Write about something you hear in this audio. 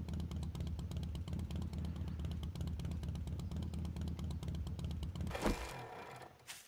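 A motorbike engine hums steadily, then cuts off.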